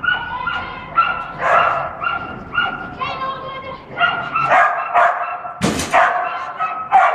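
A dog barks excitedly and repeatedly in a large echoing hall.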